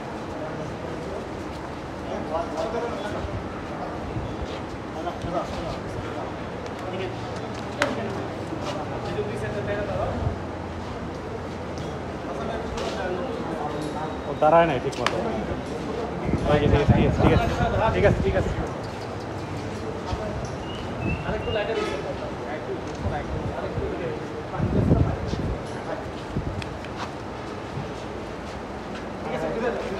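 Men talk and call out nearby in a large echoing hall.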